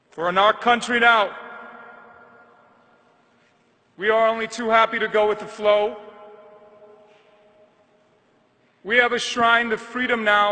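A man speaks slowly into a microphone in a large echoing hall, pausing between phrases.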